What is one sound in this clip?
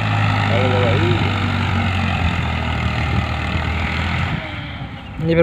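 A tractor engine rumbles steadily nearby.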